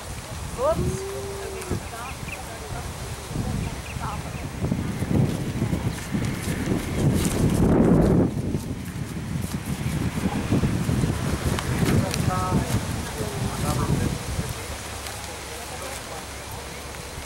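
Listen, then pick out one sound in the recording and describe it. A horse's hooves thud on grass as it canters.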